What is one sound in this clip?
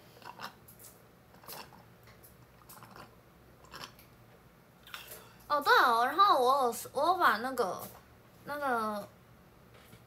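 A young woman sips a drink noisily through a straw.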